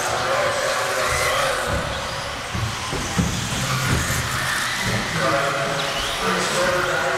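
A small electric motor whines at high pitch as a radio-controlled car races.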